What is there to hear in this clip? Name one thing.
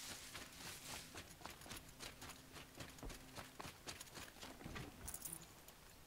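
Footsteps crunch quickly on dry ground.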